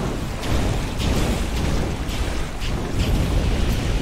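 Water splashes and churns around a swimmer at the surface.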